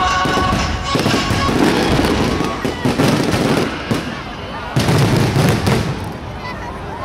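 Fireworks burst with loud booms.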